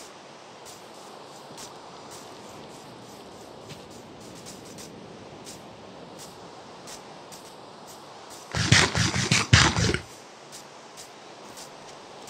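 Rain patters steadily with soft scattered drips.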